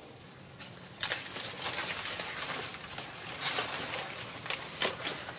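Dry palm leaves rustle loudly as a boy brushes them aside.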